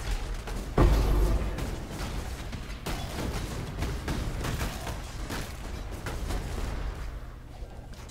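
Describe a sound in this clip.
Crackling flames roar around a fighter.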